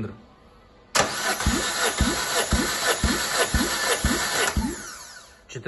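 An engine cranks over with a rapid rhythmic chugging.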